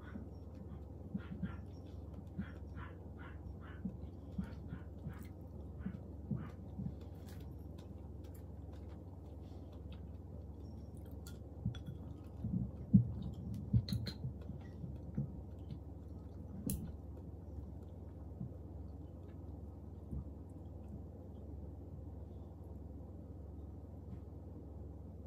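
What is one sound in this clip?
A young woman chews food with wet, crunchy sounds close up.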